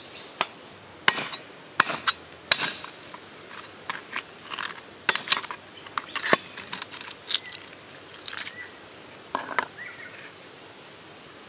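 A cleaver chops sharply against a wooden board.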